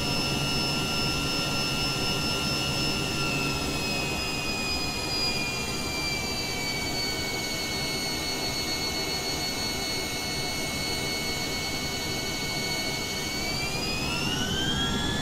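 A small jet's engines whine steadily as it taxis, with the whine rising near the end.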